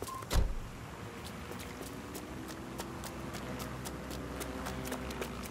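Footsteps patter quickly as a person runs.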